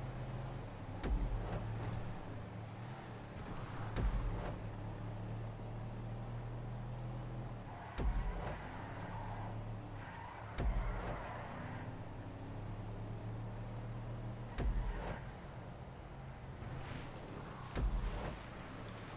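Tyres roll over asphalt and gravel.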